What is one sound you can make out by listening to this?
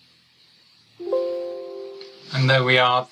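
A computer alert chimes.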